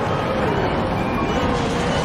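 Tyres screech as a car slides through a corner.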